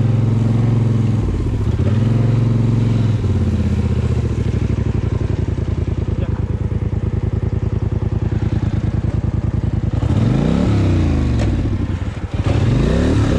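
A quad bike engine chugs and revs loudly, rising and falling in pitch.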